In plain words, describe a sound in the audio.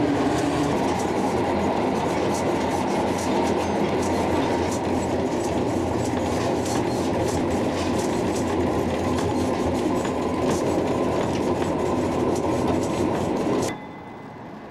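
A tram rumbles and rattles along, with steady clicking and knocking.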